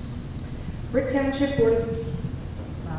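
A woman speaks into a microphone over loudspeakers in a large echoing hall.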